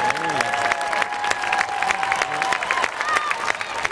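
A spectator claps hands.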